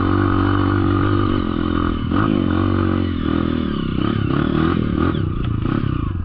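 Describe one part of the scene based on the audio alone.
A dirt bike engine revs and putters loudly up close, rising and falling in pitch.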